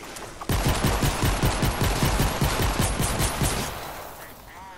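Rapid gunfire rattles in a fast, steady burst, then stops.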